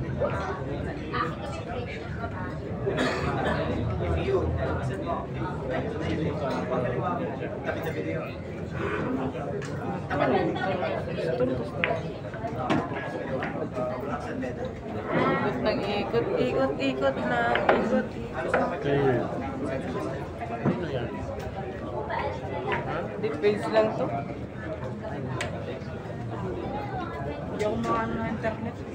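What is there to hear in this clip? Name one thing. A crowd of young men chatters.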